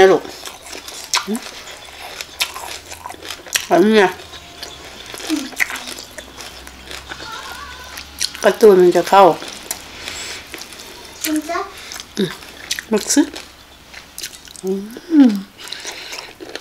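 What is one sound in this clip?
A young woman slurps and smacks her lips while eating.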